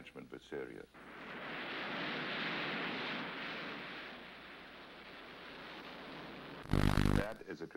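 A jet plane roars past and fades.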